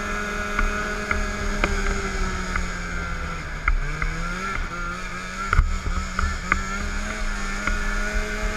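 A snowmobile engine drones steadily close by, with jolts and rattles over bumps.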